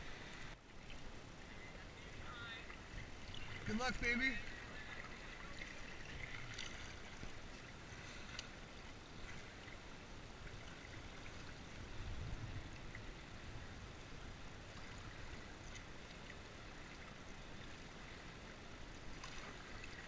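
Water laps and splashes against a kayak.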